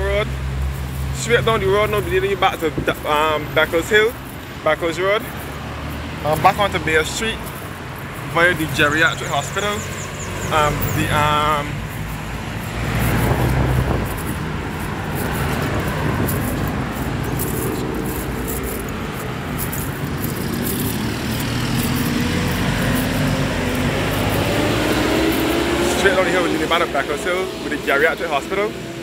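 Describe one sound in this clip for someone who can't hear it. Cars drive past on a busy road close by.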